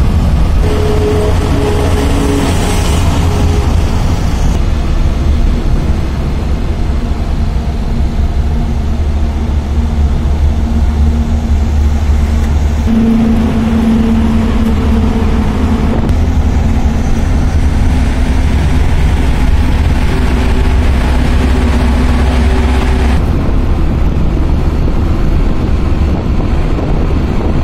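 A vehicle's engine rumbles steadily from inside the cab.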